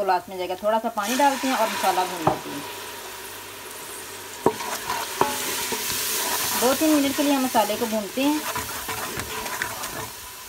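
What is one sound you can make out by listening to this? Food sizzles loudly in hot oil in a pot.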